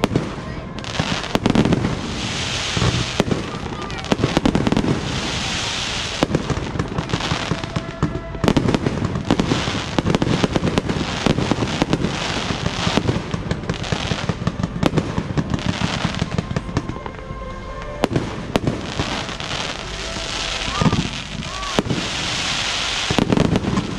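Firework stars crackle and fizz as they burn.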